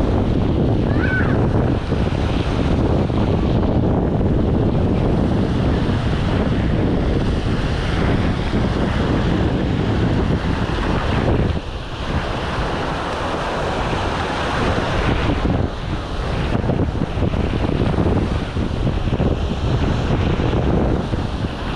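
Wind blows roughly past outdoors.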